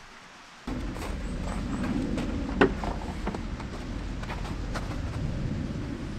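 Footsteps crunch on gravel and snow.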